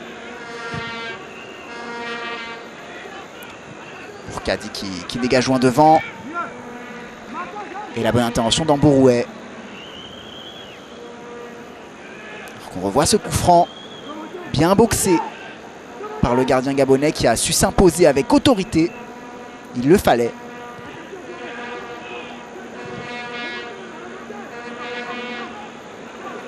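A large stadium crowd cheers and chants steadily in the distance.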